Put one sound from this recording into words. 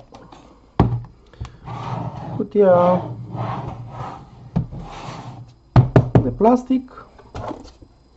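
A hard plastic case knocks and thuds onto a table.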